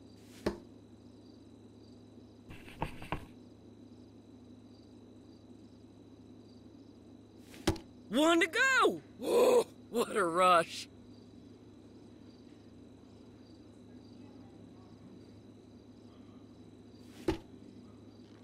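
Darts thud into a dartboard.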